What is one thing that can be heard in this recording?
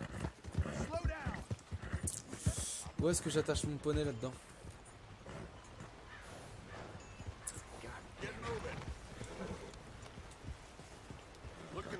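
A horse's hooves clop at a walk on a dirt path.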